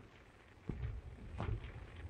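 A fire roars and crackles.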